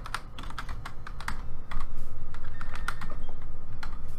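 A video game menu beeps as it opens.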